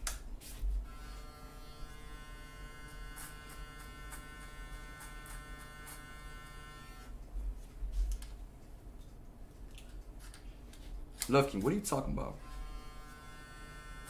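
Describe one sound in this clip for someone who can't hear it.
Electric hair clippers buzz steadily close by.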